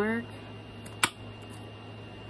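A hand punch snaps shut with a sharp click.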